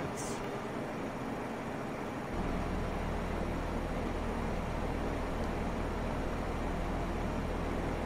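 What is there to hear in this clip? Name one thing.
Jet engines hum steadily at idle, growing louder after a couple of seconds.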